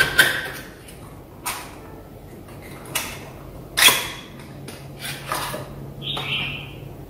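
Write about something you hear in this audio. Cardboard packaging rustles and clicks as a box is opened.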